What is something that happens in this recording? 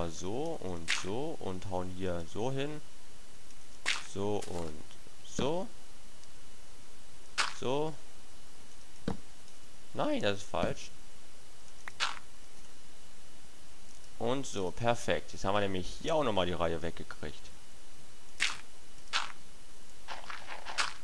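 Short crunching thuds sound as blocks are dug out.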